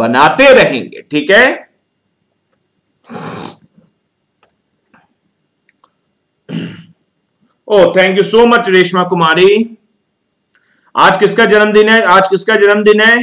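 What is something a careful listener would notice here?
A young man speaks calmly into a close microphone, pausing between phrases.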